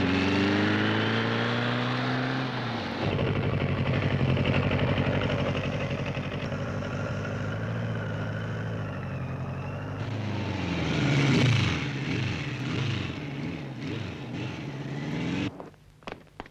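A motorcycle engine roars close by, revving up and down as it rides.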